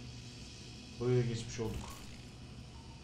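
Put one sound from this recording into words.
A man speaks briefly and calmly close to a microphone.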